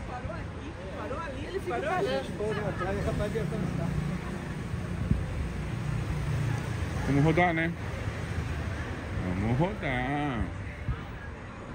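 Adults chat nearby on a street.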